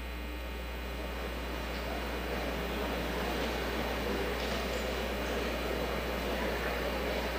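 An audience claps steadily in a large hall.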